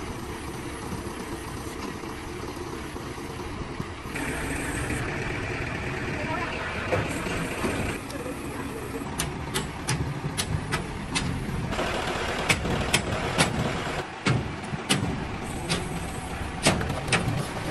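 A truck crane engine runs with a steady rumble.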